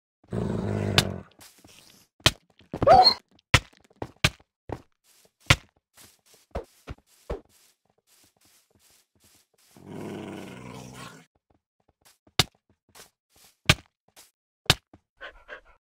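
Sharp hits land in quick succession.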